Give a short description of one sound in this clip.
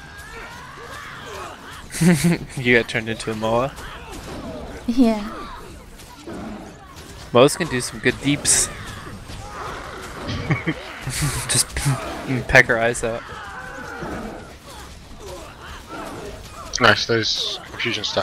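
Magic spells crackle and burst during a fight.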